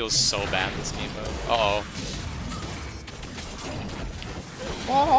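Magic spells whoosh and crackle in quick bursts.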